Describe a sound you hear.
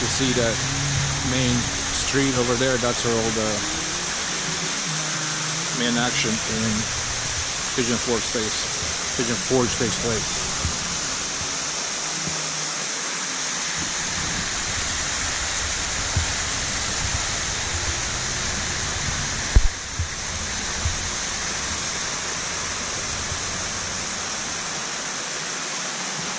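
Water from a fountain splashes steadily into a pool outdoors.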